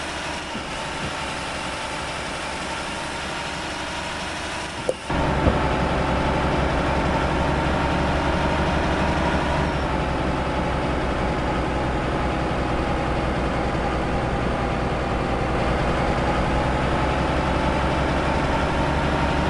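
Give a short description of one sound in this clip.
A truck engine hums steadily and grows louder and deeper partway through.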